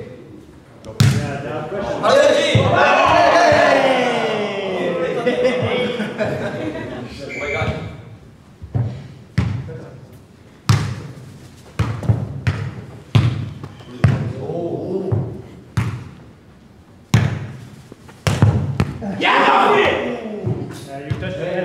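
A football thumps against feet and heads, again and again, in a large echoing hall.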